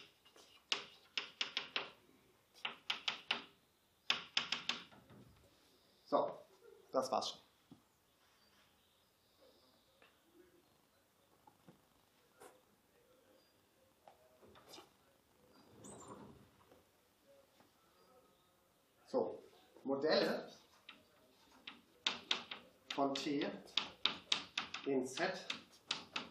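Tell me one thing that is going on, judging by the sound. Chalk taps and scratches on a board in quick bursts.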